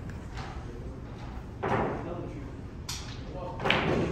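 A cue strikes a snooker ball.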